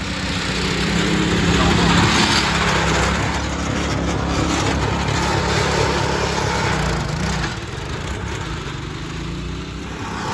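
Tyres spin and spray loose dirt.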